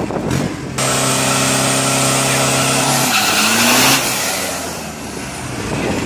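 A van drives off with a rising engine roar.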